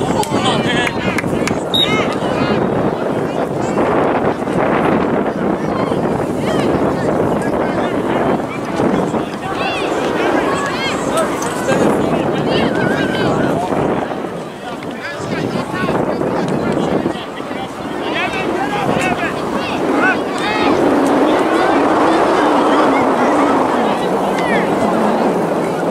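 Children shout to each other on the field.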